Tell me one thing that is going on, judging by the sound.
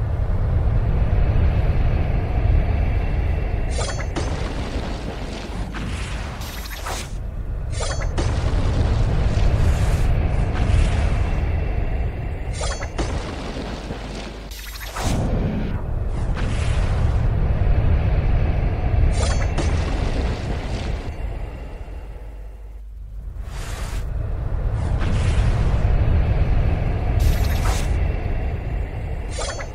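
Sword slashes and magic blasts crash again and again in a fast fight.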